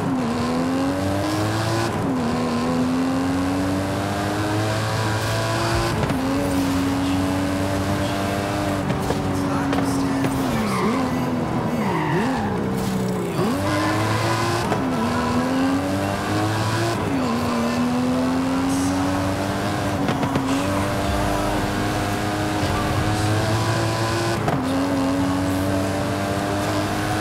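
A powerful car engine roars as it accelerates, its pitch climbing and dropping sharply with each gear change.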